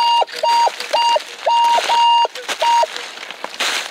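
A metal detector beeps in quick bursts.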